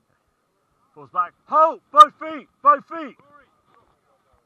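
Several men shout loudly in turn.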